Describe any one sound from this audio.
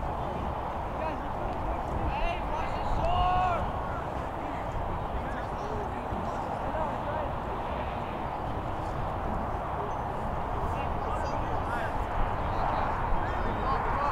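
Young men shout to each other from across an open field.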